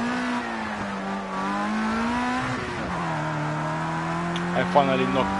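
A racing car engine drones loudly at high revs, dropping in pitch as the car slows for a corner.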